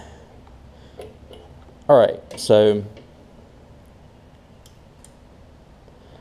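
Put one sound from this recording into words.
A metal lever clicks as it is moved by hand.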